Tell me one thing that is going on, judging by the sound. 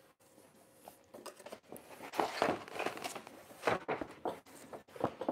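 A plastic sheet rustles and crinkles as a man handles it.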